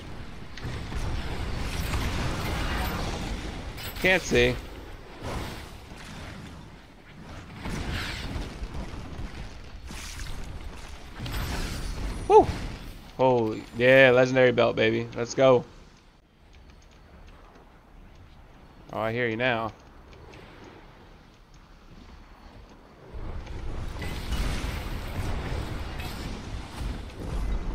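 Video game spell blasts whoosh and crackle.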